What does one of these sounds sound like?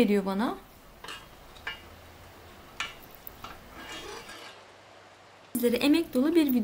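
A spoon scrapes and taps against a pan.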